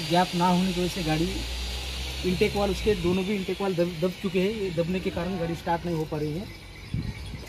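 A man speaks close by, explaining calmly.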